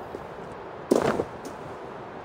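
A footstep thuds on wooden boards.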